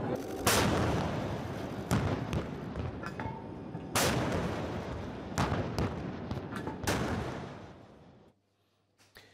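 A naval gun fires loud booming blasts that echo over open water.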